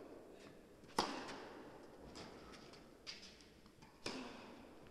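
A tennis racket strikes a ball with a sharp pop in a large echoing hall.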